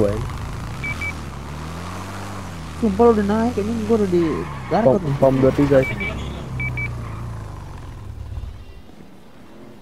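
A motorcycle engine hums steadily, then cuts out.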